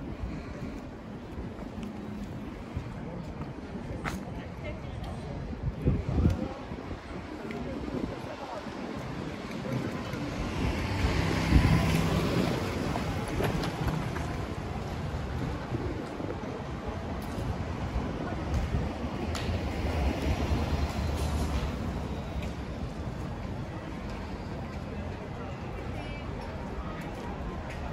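Distant traffic hums outdoors.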